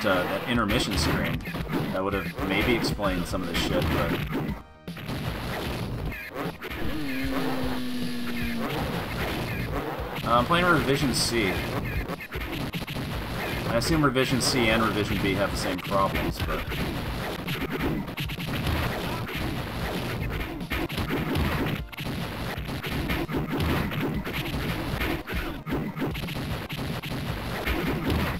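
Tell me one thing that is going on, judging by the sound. Explosions boom in an arcade game.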